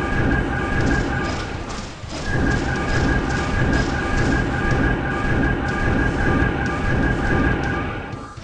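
Game spell effects whoosh and zap in quick bursts.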